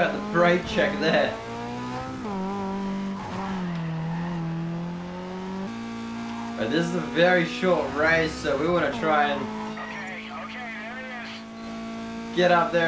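A car engine roars at high speed, rising and falling in pitch.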